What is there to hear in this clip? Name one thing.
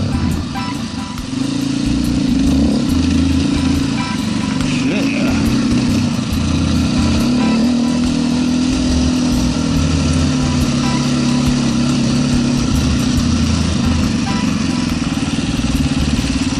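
A dirt bike engine drones steadily up close.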